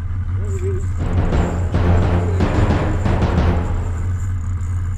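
A fishing reel's handle is cranked, ratcheting.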